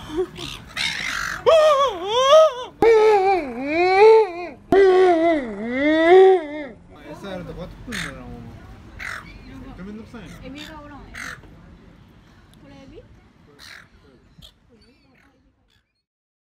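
Seagulls call loudly close by, with shrill, wailing cries.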